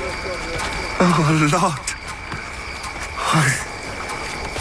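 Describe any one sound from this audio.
A man shouts with strain.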